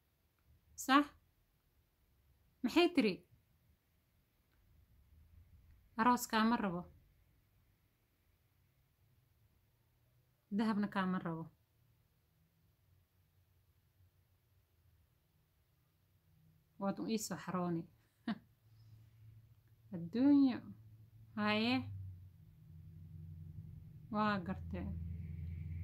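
A young woman speaks close by in short phrases, pausing often between them.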